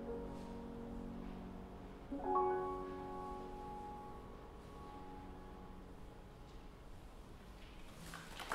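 A piano plays soft notes.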